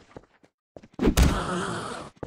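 Fists thump against a body.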